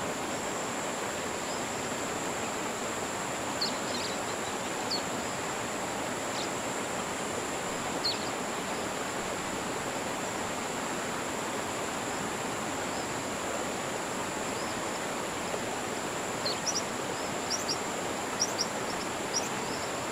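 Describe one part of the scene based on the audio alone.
Calm water laps softly and steadily outdoors.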